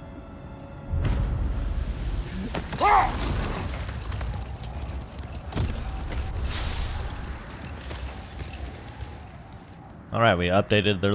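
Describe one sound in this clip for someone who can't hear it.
A sled slides and scrapes over ice.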